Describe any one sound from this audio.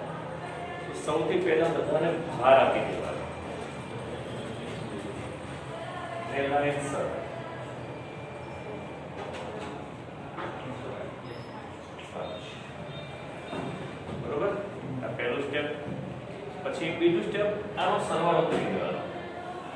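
An elderly man speaks with animation.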